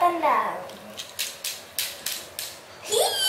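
A plastic toy clicks and clacks as it is moved.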